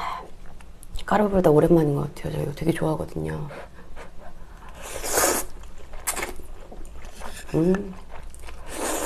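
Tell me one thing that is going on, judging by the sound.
A young woman speaks briefly and softly, close to a microphone.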